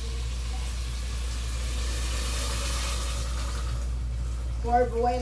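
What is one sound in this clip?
Water pours from a kettle into a pot.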